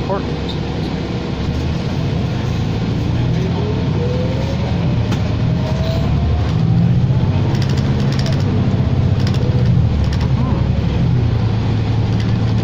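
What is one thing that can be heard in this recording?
A bus engine hums and rumbles steadily from inside as the bus drives along.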